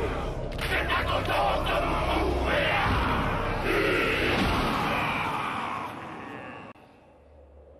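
Men shout a loud chant together.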